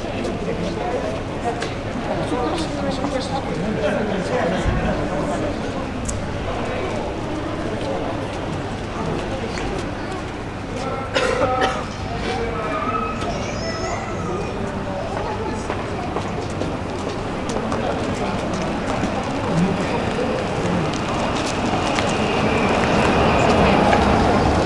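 A crowd of people chatters quietly nearby, outdoors.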